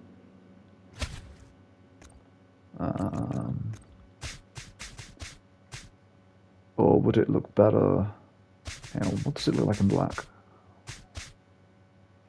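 Short game menu clicks sound as options are picked.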